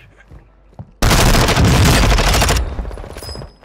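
A rifle fires a rapid loud burst indoors.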